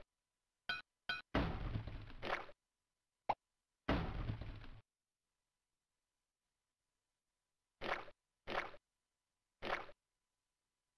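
Short, squelchy game sound effects play in bursts.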